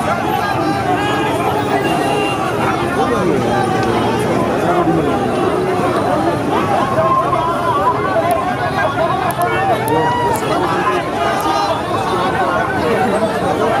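A large crowd of men shouts and chants loudly outdoors.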